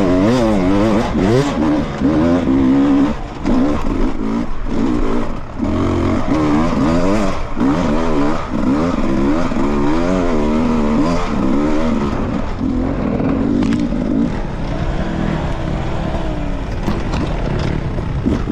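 A dirt bike engine revs up and down, loud and close.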